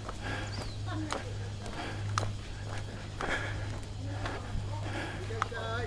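Footsteps walk along a paved path outdoors.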